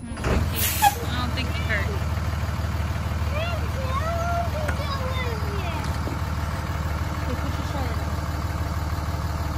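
A diesel truck engine idles steadily with a low rumble.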